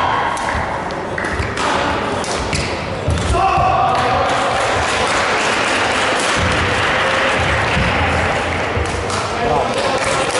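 Badminton rackets strike a shuttlecock back and forth.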